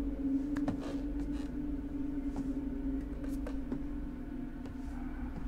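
Footsteps creak and thud on a wooden floor in an empty, echoing room.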